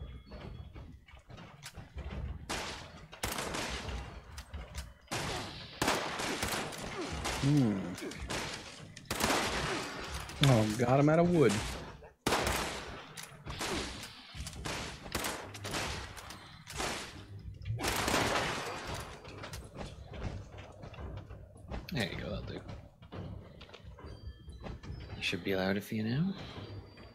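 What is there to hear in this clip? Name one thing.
A rifle fires rapid shots in bursts.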